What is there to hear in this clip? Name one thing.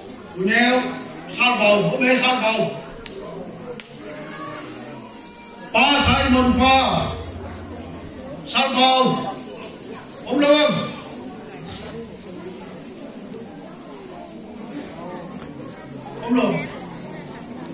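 A man speaks slowly through a microphone and loudspeakers in a large echoing hall, pausing between phrases.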